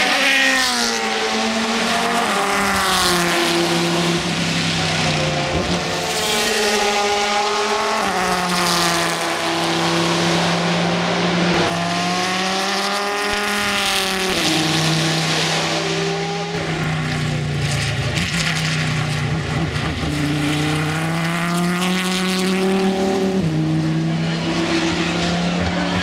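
A race car engine roars loudly at high revs, shifting gears as it passes.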